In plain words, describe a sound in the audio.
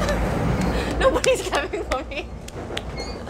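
A young woman laughs brightly nearby.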